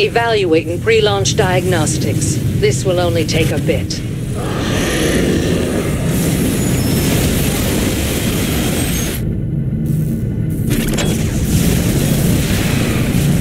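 Laser blasts and explosions rumble in a noisy battle.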